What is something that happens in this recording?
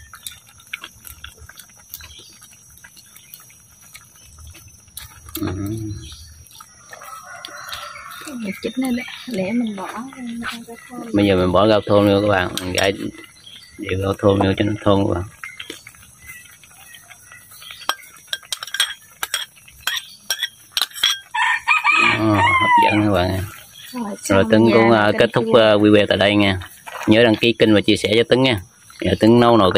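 A metal ladle clinks against a wok.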